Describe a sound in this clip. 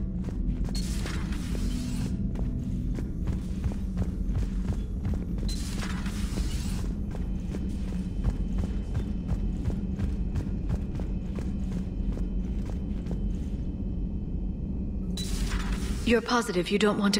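Footsteps tap steadily on a metal floor.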